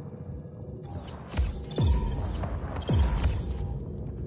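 Sharp whooshes sweep by as a flier passes through rings.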